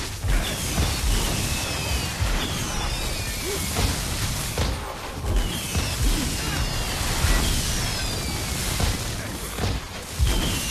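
Magic spell blasts whoosh and crackle again and again.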